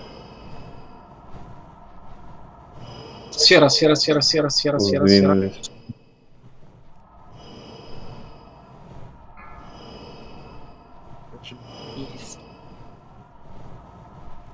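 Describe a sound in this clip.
Magic spells blast and crackle during a fantasy battle.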